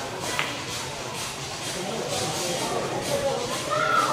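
Billiard balls click together on a pool table.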